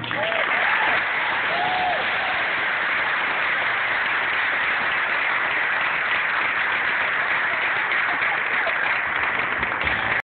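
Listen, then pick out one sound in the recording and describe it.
A children's choir sings together in a large room.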